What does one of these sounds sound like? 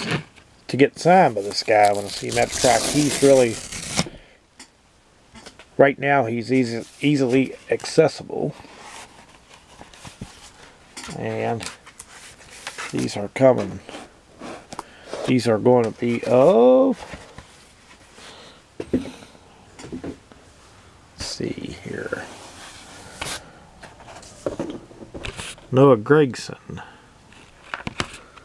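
A sheet of thin cardboard rustles and scrapes as it is handled.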